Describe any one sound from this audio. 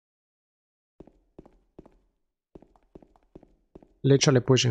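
Slow footsteps tap on a hard floor.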